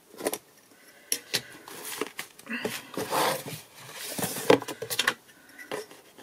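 Paper and card rustle and slide as they are handled.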